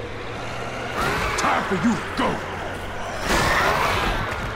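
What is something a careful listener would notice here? Bodies thud against a truck's front.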